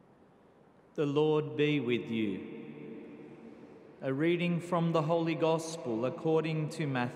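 A younger man chants into a microphone in a reverberant hall.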